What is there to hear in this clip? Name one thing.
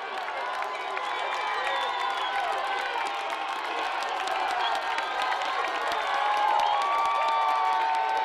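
A crowd of spectators cheers outdoors during a football play.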